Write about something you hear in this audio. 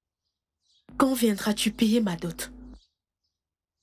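A woman speaks sharply, close by.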